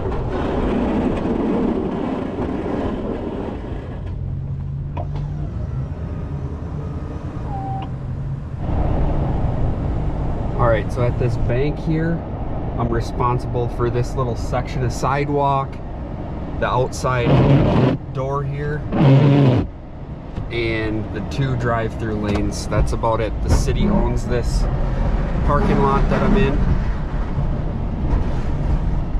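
A snow plow blade scrapes along the road.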